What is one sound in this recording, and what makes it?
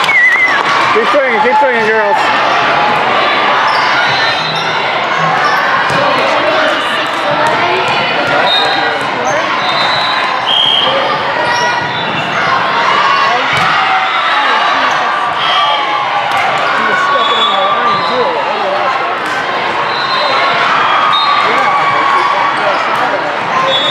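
A crowd of voices chatters and cheers throughout a large echoing hall.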